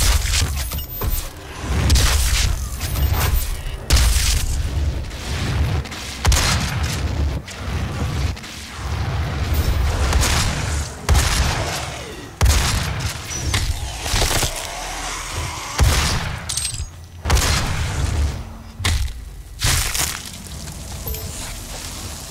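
A gun fires in loud booming blasts.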